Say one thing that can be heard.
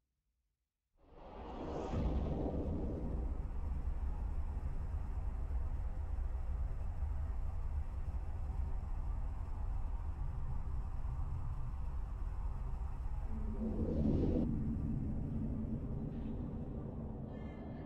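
A deep spaceship engine roars up and rumbles steadily.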